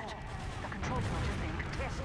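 A rocket launcher fires with a whoosh.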